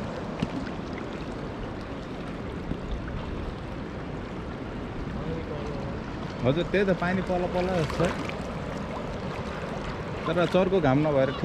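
A river flows and ripples steadily outdoors.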